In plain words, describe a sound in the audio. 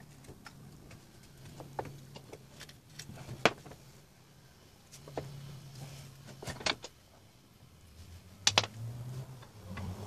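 Metal tools click and clank against a motorcycle's rear wheel.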